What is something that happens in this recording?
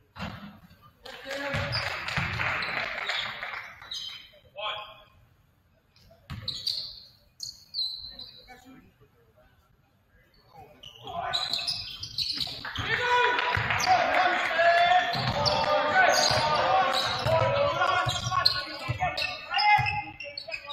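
A crowd cheers and shouts in a large echoing gym.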